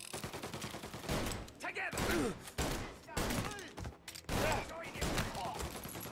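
Pistol shots ring out sharply, one after another.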